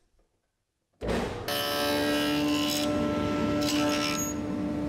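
A table saw whirs steadily nearby.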